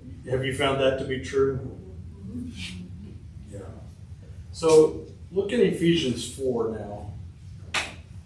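A middle-aged man speaks calmly in a room with some echo.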